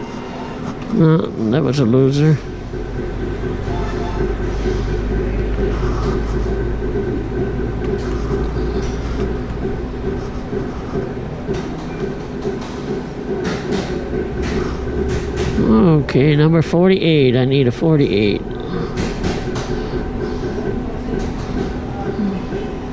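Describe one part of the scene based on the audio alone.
A slot machine plays steady electronic music and chimes.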